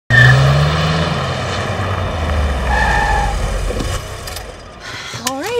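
A car engine hums as a car pulls up and stops.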